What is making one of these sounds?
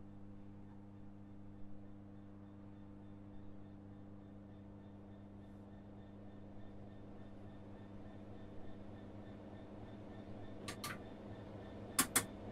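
A diesel train engine idles with a steady low hum.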